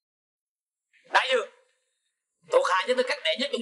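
A man speaks loudly and forcefully nearby.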